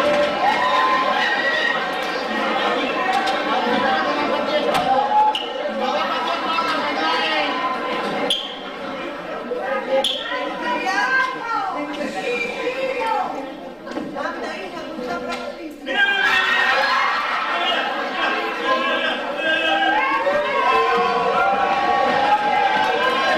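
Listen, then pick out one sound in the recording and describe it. A chorus of men sings a carnival chirigota song.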